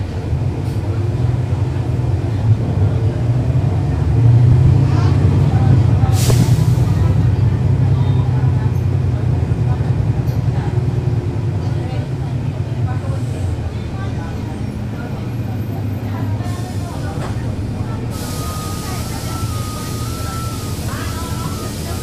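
A bus engine idles with a deep, steady rumble close by.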